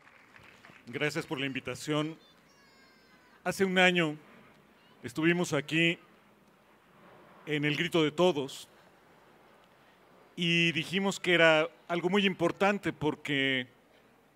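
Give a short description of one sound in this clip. A middle-aged man speaks calmly into a microphone, heard through a loudspeaker.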